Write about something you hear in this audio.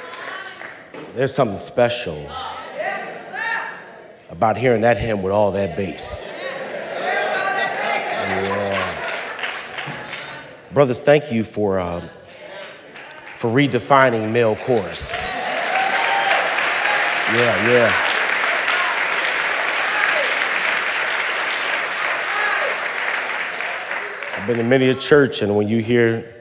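A man preaches with animation through a microphone in a large echoing hall.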